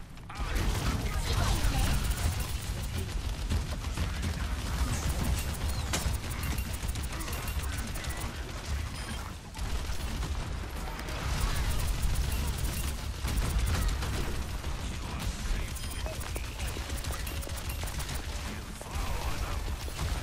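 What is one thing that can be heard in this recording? Energy blasts crackle and explode in a video game.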